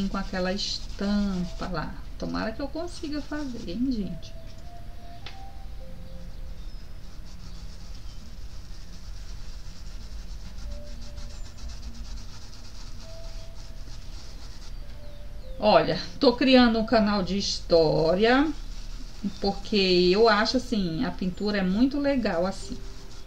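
A paintbrush dabs and brushes softly on fabric.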